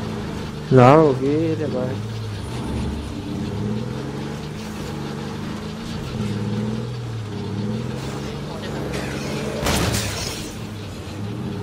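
A van engine hums steadily as it drives along a road.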